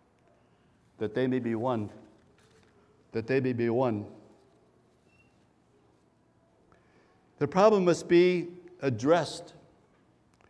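An elderly man speaks calmly into a microphone, reading out in short phrases.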